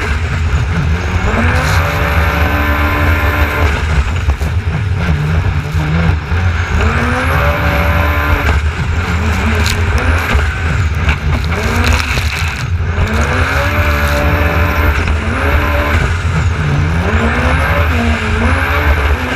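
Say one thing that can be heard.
Water sprays and splashes against the hull.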